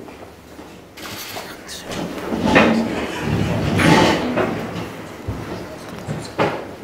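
Chairs scrape and creak as several people sit down.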